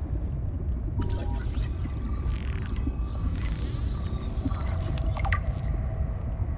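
A scanner hums and crackles electrically.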